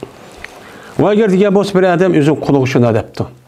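An elderly man begins to chant melodiously, close to a microphone.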